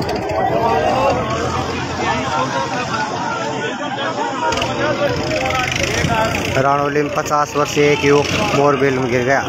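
A crowd of men talk and call out outdoors.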